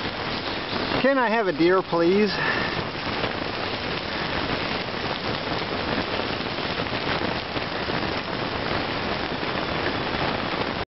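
Gravel crunches steadily under a person moving along a path.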